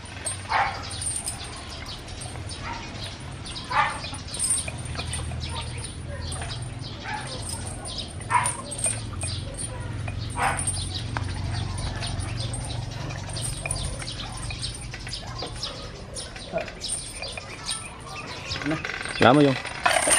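Metal chains hanging from concrete dumbbells rattle and clink.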